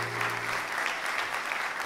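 A choir of men and women sings a final held chord in an echoing hall.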